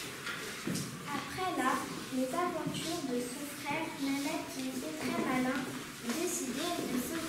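A young girl reads aloud nearby.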